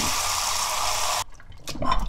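A hand sloshes water in a bowl.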